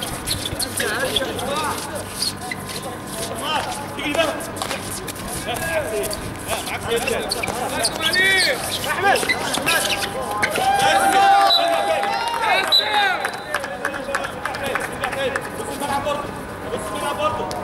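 A crowd of young men shout and call out outdoors.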